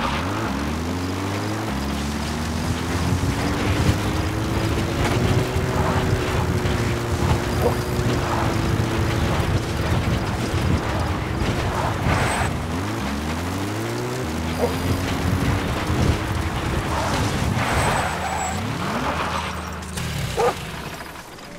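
A jeep engine revs and shifts gears as it drives over rough ground.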